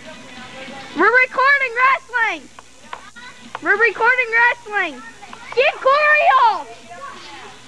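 A young boy shouts in high, drawn-out calls nearby.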